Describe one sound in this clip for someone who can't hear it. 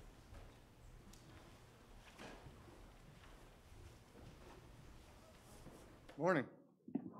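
A crowd murmurs quietly in a large room.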